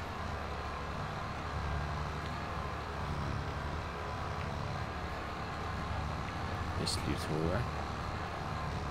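A diesel tractor engine drones under load.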